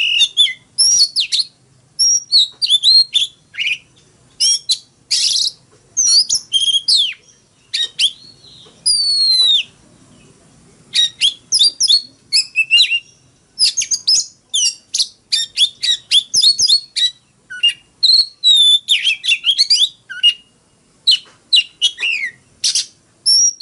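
A caged songbird sings loud, varied whistling phrases with quick chirps and trills close by.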